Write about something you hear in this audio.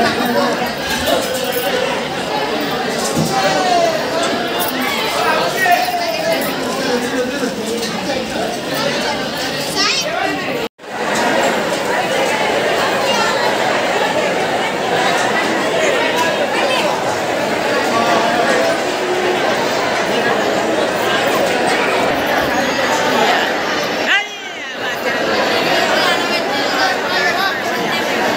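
A dense crowd of men and women chatters loudly all around.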